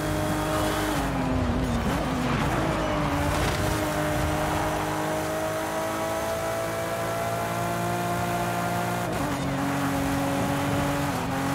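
Tyres screech as a car drifts through a turn.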